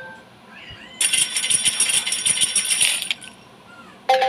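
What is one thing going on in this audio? Coins jingle and clink in a rapid shower.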